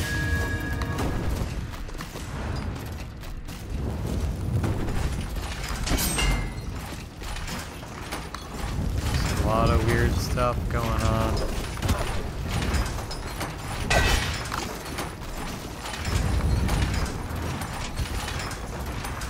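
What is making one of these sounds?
Game music plays steadily throughout.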